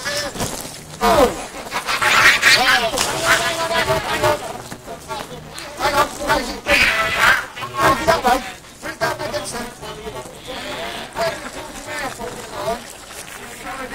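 Children shout and laugh excitedly outdoors.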